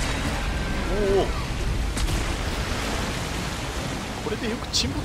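A huge creature bursts out of the water with a loud splash.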